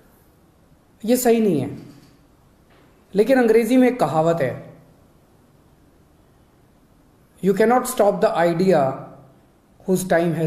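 A middle-aged man speaks calmly into a nearby microphone, in short phrases with pauses.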